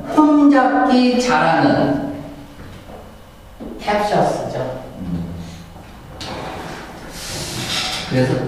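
A man speaks calmly into a microphone, heard through a loudspeaker in an echoing room.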